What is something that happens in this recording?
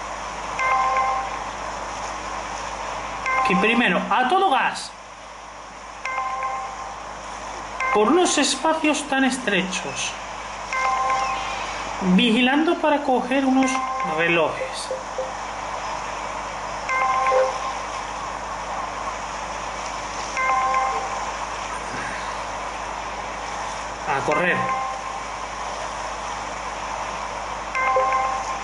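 A short bright chime rings out again and again.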